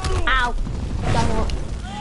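Flames crackle and roar on a burning helicopter.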